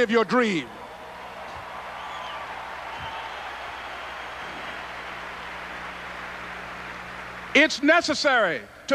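A man preaches loudly and with fervour through a microphone and loudspeakers.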